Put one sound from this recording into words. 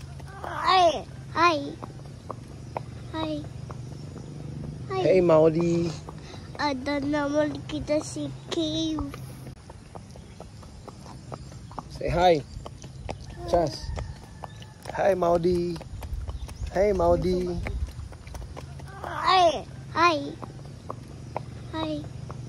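Horse hooves clop slowly on a hard road.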